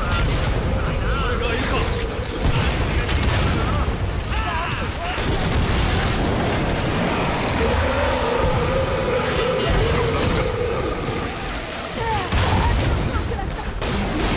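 Monsters shriek and screech.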